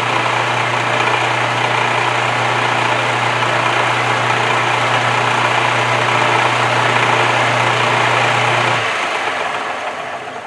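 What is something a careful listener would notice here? A drill bit grinds into spinning metal.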